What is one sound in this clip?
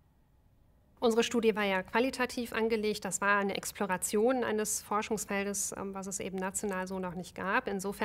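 A middle-aged woman speaks calmly and clearly, close to a microphone.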